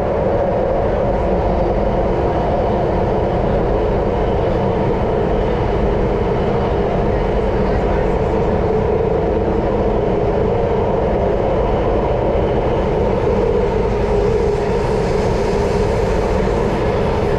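Wheels clatter rapidly on the rails.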